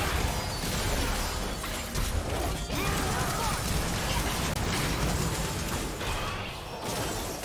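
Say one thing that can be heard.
Magic spells crackle and burst in a video game battle.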